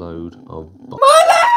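A young woman's voice bursts out loudly and high at the end.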